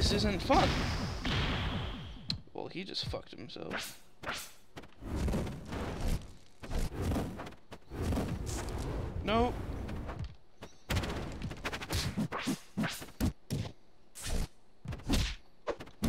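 Quick swooshing attack sounds cut through the air.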